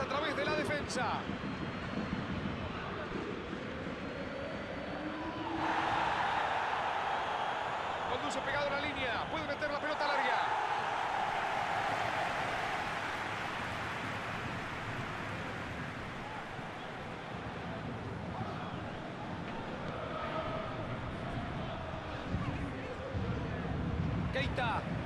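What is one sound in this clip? A stadium crowd roars and cheers steadily.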